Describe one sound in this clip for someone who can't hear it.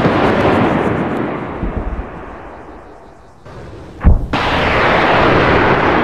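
A burning aircraft roars as it falls from the sky.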